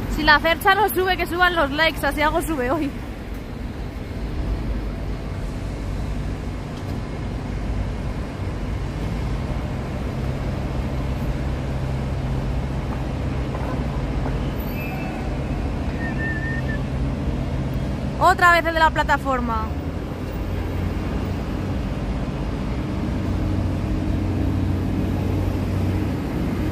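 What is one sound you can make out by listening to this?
A machine motor hums steadily nearby.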